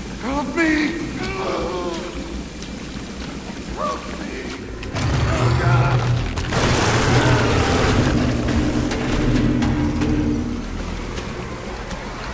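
Water sloshes and splashes as someone wades through it.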